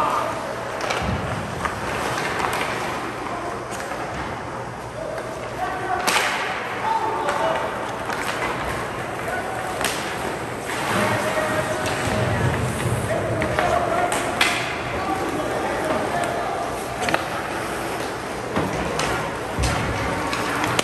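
Hockey sticks clack against the puck, echoing in a large hall.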